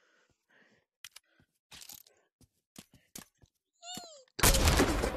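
Empty cartridge cases drop and tinkle on the ground.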